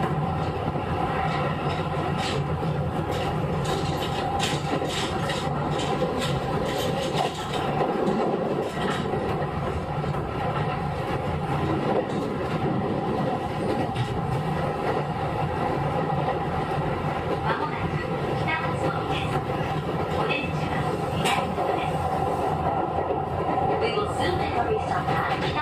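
An electric train hums steadily while standing still.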